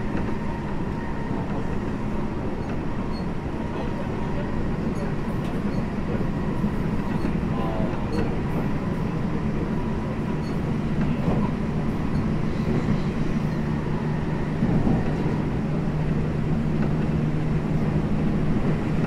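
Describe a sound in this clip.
An electric commuter train with an IGBT inverter hums while standing at a platform.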